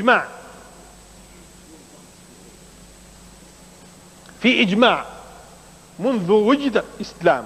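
A man speaks with animation in short bursts with pauses.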